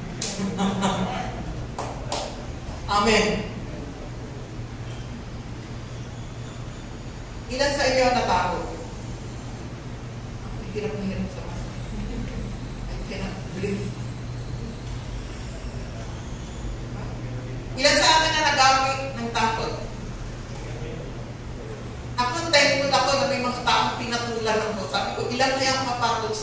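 A woman speaks through a microphone and loudspeakers, in bursts with pauses.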